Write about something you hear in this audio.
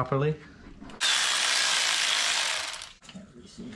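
A pneumatic ratchet whirs loudly in a short burst.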